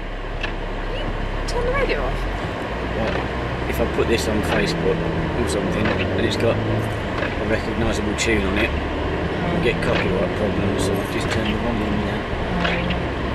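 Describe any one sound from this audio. An elderly man talks close by.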